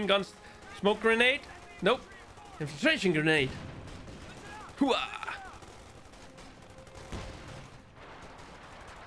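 Gunfire crackles.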